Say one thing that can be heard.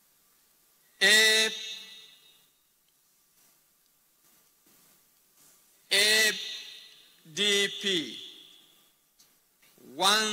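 A man shouts loudly in short bursts in an echoing hall.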